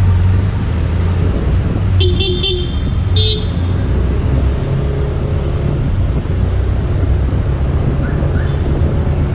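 A vehicle engine hums steadily with low road rumble.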